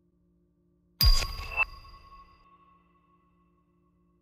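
A short electronic notification chime rings out and fades.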